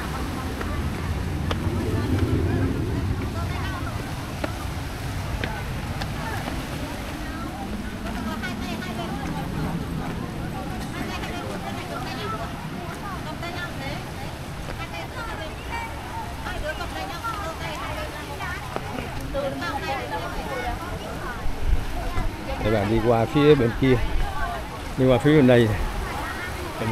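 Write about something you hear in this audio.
Waves wash gently over a rocky shore outdoors.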